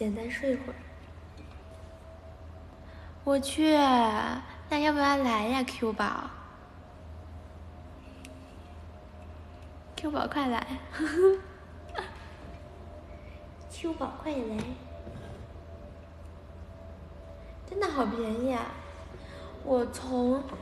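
A young woman talks close to the microphone, with animation.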